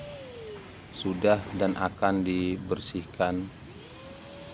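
A man speaks nearby in a casual voice.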